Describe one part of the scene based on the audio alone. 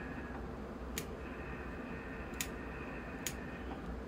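Pruning shears snip through roots with sharp clicks.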